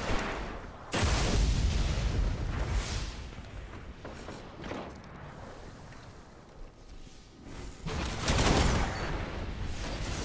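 Heavy energy blasts boom and rumble close by.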